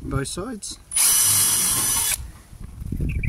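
A cordless drill whirs briefly at high speed.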